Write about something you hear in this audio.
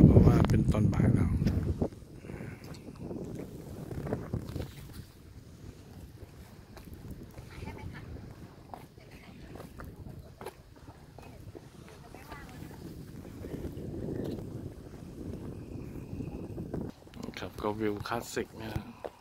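Wind blows across the microphone outdoors in uneven gusts.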